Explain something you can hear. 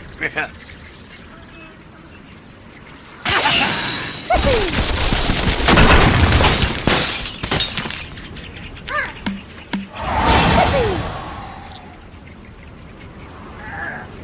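A slingshot launches with a stretchy twang and a whoosh.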